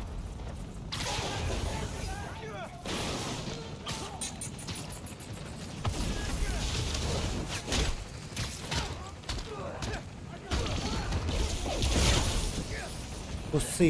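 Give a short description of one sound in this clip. Explosions boom in bursts.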